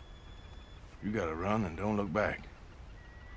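A man answers in a quiet, rough voice.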